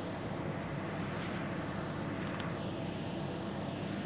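Paper pages rustle softly as a book is opened and turned.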